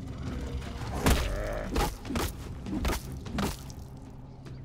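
A spear strikes an animal with sharp, heavy thuds.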